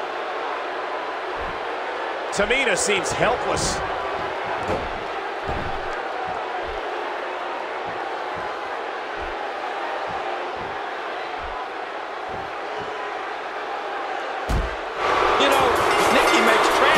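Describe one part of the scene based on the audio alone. A large arena crowd cheers throughout.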